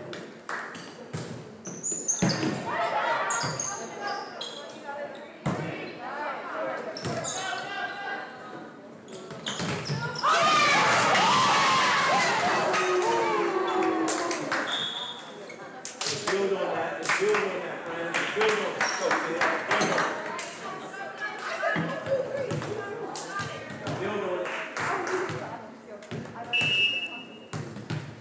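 Young women players call out to each other across the court.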